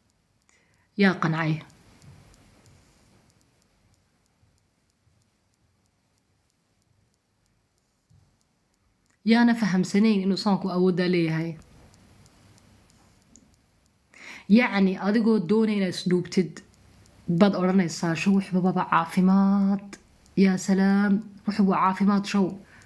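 A woman speaks with animation, close to the microphone.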